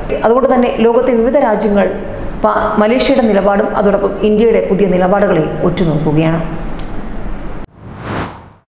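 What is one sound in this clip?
A woman reads out news calmly into a microphone.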